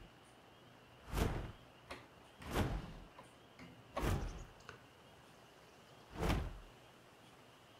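Large wings flap with heavy whooshes.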